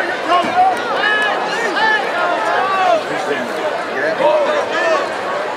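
A large crowd cheers and shouts outdoors in a stadium.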